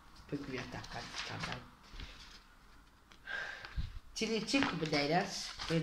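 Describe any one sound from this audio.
A sheet of paper rustles.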